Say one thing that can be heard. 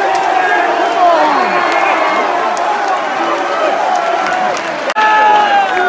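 Fans clap their hands.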